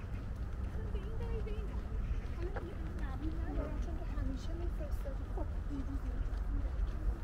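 Young men talk casually as they walk past nearby.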